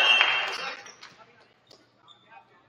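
A crowd cheers loudly in a large echoing gym and quickly fades.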